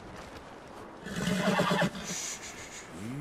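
A horse snorts and blows.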